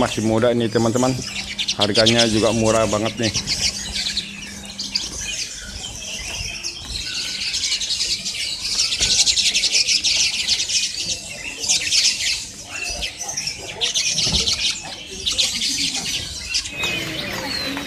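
Many small birds chirp and twitter rapidly close by.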